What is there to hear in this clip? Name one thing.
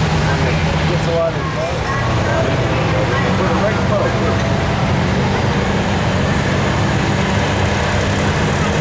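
A heavy engine roars loudly and steadily.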